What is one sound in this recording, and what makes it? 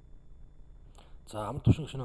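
A second man begins speaking into a microphone.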